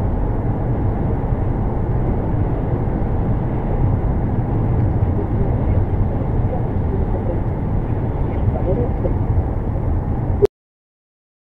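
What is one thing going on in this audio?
Tyres roar steadily on a road as a car drives fast.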